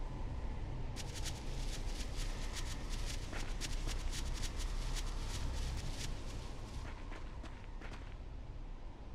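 Quick footsteps run across grass.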